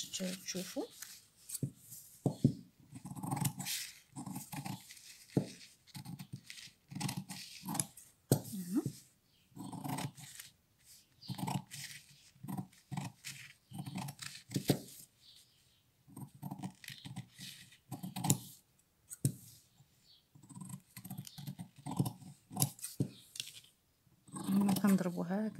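Scissors snip through stiff paper.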